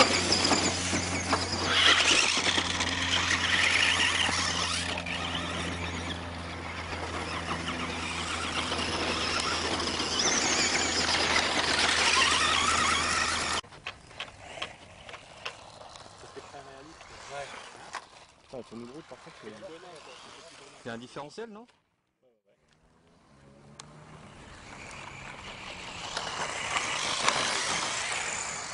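A small electric motor whines as a toy car races over dirt.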